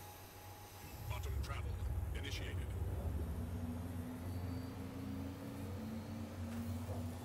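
A spacecraft engine hums low and steady.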